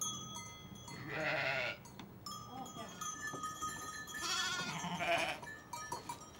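Sheep bleat loudly nearby.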